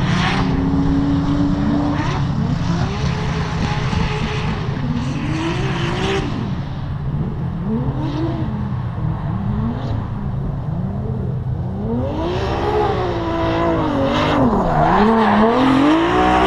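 Car engines rev up and down in the distance, getting louder as a car drifts closer.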